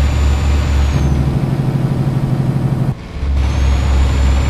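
A truck engine drops in pitch and briefly cuts out during a gear change.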